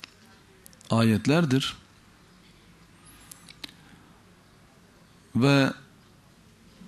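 A man speaks forcefully into a microphone in short bursts.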